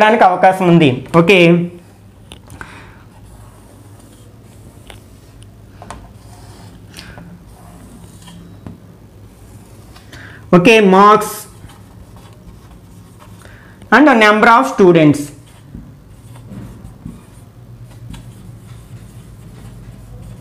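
A marker squeaks and scratches as it writes on a board.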